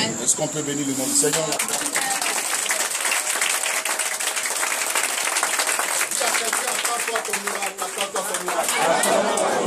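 A crowd claps hands rapidly in a room.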